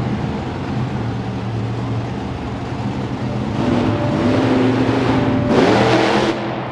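A monster truck engine roars loudly and revs up.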